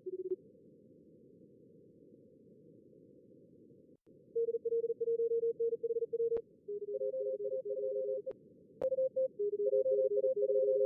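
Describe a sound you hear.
A low radio hiss runs steadily.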